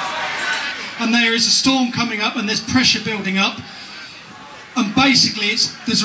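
A middle-aged man speaks forcefully into a microphone through a loudspeaker.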